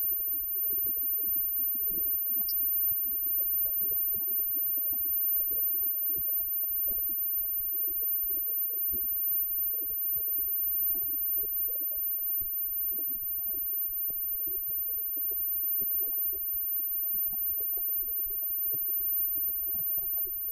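Electric guitars play a live rock tune.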